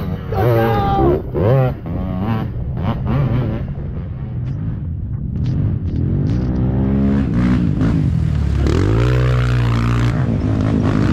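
A quad bike engine revs and roars up close.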